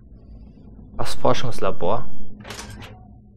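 A heavy metal door grinds and clanks open.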